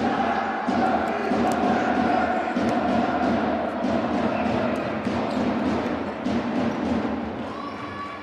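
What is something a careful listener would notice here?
A large crowd cheers loudly in an echoing hall.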